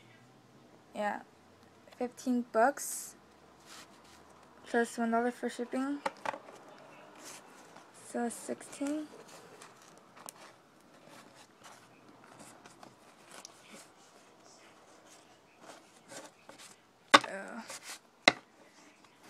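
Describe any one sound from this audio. Stiff cards rustle and click softly as they are shuffled through by hand.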